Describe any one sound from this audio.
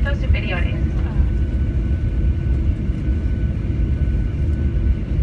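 An aircraft cabin rumbles steadily as a plane rolls along a runway.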